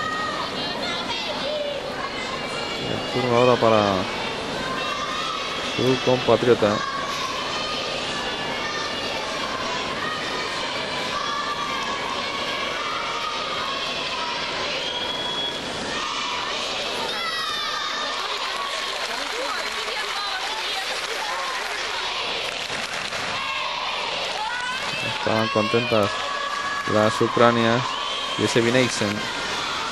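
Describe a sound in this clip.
A large crowd murmurs steadily in a big echoing hall.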